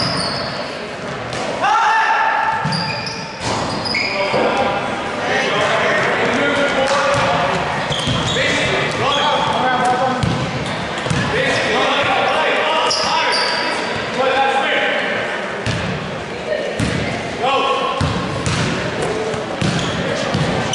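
Young men shout to each other on the court.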